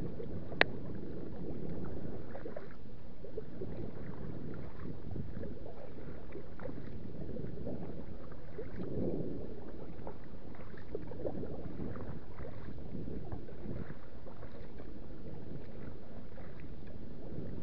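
A kayak paddle splashes and dips into the water.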